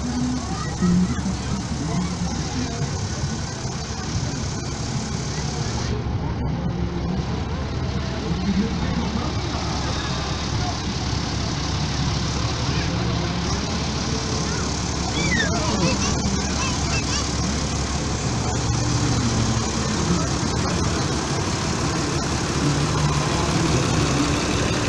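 People in a crowd chatter outdoors.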